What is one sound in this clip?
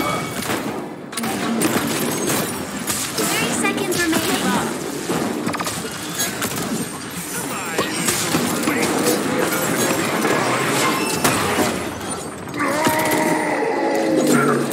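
Explosions and impacts burst loudly.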